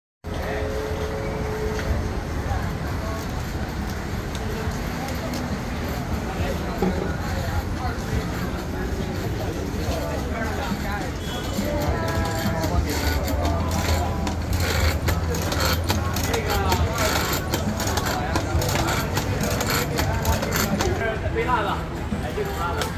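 A crowd of people chatters in a busy outdoor street.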